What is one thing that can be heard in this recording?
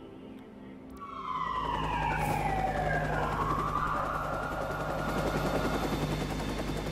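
A helicopter passes overhead, its whirring dropping in pitch as it goes by.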